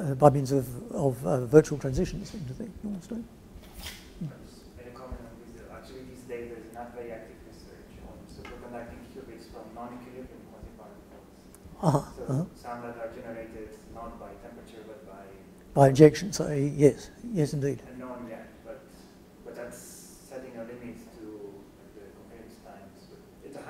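An elderly man lectures calmly, heard in a room with some echo.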